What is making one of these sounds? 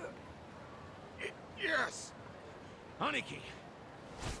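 A man speaks in short, frightened bursts.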